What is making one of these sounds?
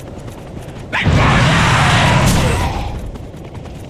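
A burst of fire roars.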